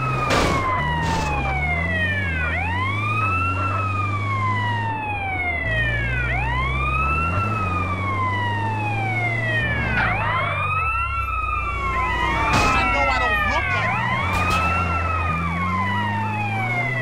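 A vehicle engine hums and revs.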